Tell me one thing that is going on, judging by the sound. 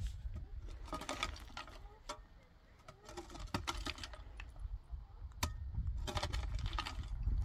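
A woman rakes dry brush over stony ground, scraping and rustling.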